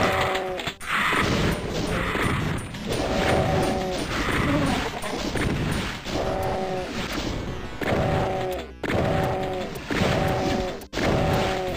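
A shotgun fires with heavy blasts.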